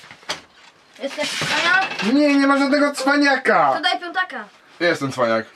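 A boy speaks nearby in a high voice.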